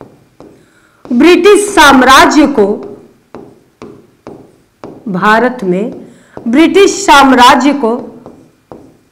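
A young woman speaks clearly close to a microphone.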